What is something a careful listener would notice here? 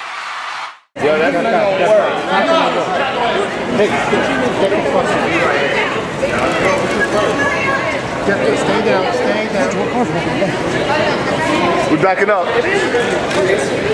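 Several people talk and call out over one another close by.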